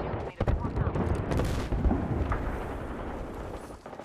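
Explosions rumble and boom nearby.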